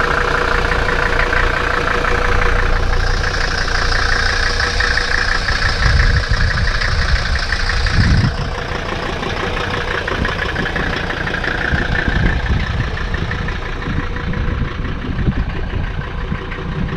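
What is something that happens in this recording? A car engine idles steadily close by.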